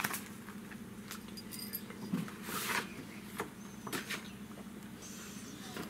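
Stiff paper rustles as it is handled.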